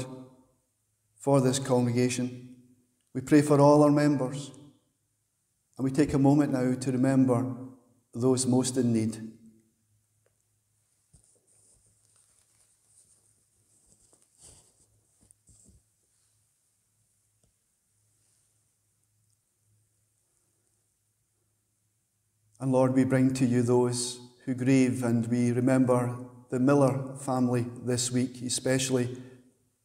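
A middle-aged man speaks calmly through a headset microphone, with pauses between phrases.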